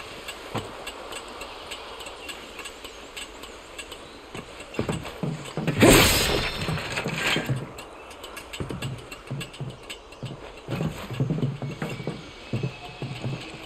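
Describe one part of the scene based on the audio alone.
Footsteps clank on a metal ladder and walkway.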